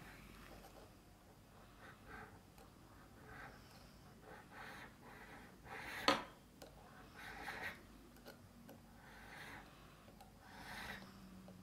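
A chisel scrapes old veneer off wood in short strokes.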